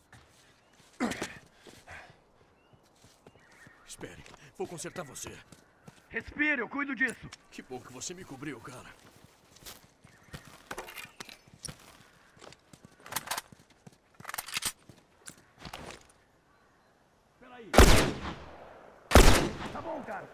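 Gunshots bang sharply, with a ringing echo.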